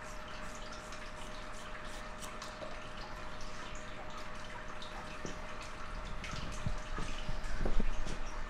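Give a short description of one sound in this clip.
Scissors snip sharply through hair, close by.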